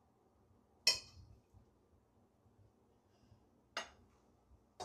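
A plate clinks against a countertop.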